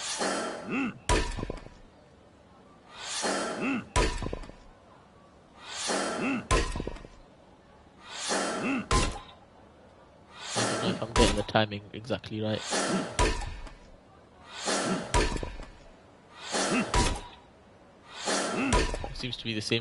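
An axe splits wood on a chopping block with sharp cracks, again and again.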